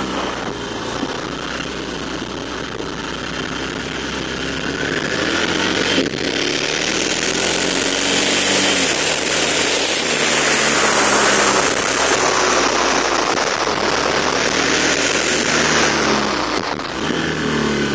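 A motorcycle engine hums steadily and changes pitch as it rides.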